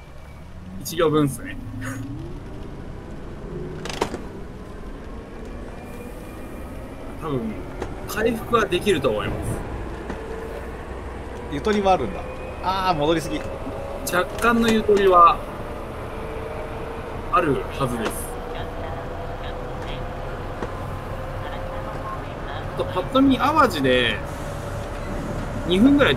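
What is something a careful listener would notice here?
Train wheels rumble over the rails.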